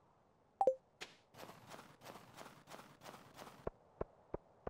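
Footsteps crunch on snow in quick succession.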